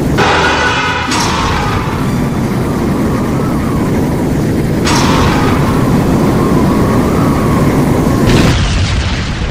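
A fiery blast roars and rumbles.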